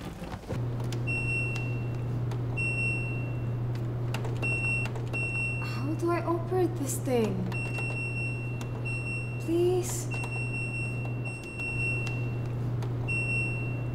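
An electronic device beeps in short, repeated tones.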